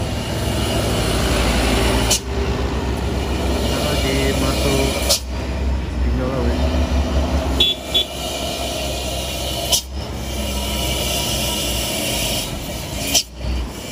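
A heavy truck's diesel engine rumbles loudly close by.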